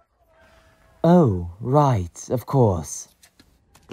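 A second man exclaims dramatically, close by.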